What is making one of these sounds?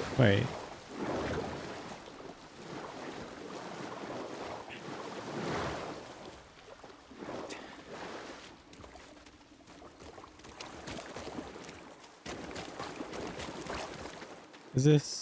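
Water splashes as someone wades and swims through it.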